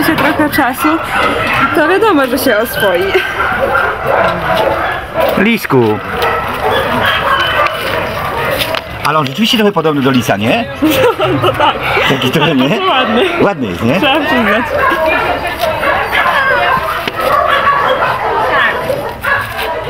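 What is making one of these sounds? A dog barks.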